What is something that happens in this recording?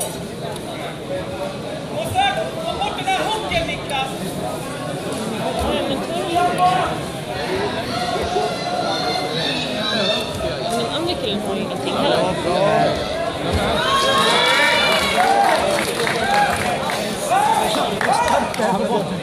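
Many voices of a crowd talk and shout in a large echoing hall.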